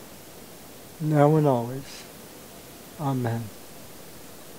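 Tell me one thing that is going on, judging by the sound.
A middle-aged man speaks calmly and briefly, close by.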